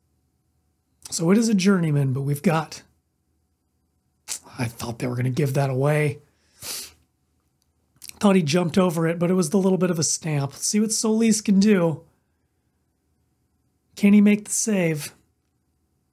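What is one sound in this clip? A young man talks calmly and closely into a microphone, in bursts with pauses.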